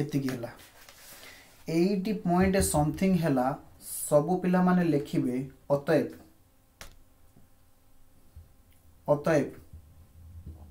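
A man speaks steadily into a close microphone, explaining in short bursts with pauses.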